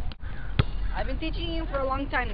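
A young boy talks calmly up close outdoors.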